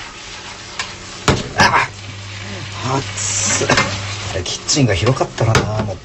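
Noodles toss and slap in a shaken frying pan.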